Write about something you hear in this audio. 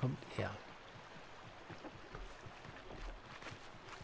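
Footsteps patter softly on a dirt path.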